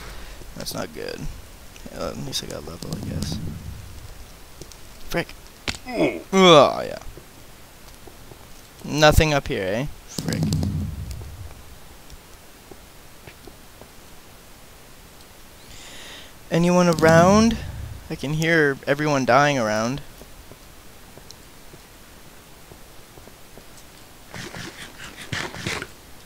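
Footsteps patter quickly over hard ground.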